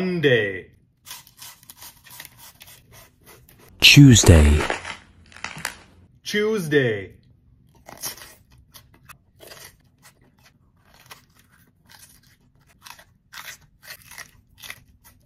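A man bites and crunches crisp food.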